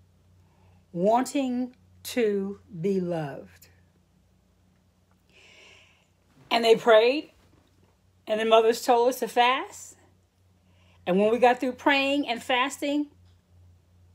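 A middle-aged woman speaks calmly and slowly, close to the microphone, with long pauses.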